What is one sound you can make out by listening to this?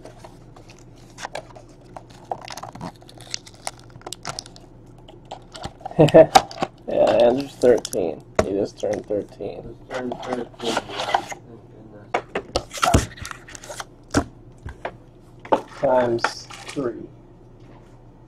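Cardboard boxes tap and slide against each other.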